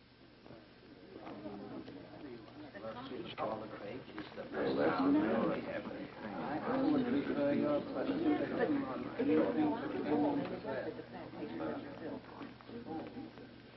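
A crowd of men murmurs and talks excitedly.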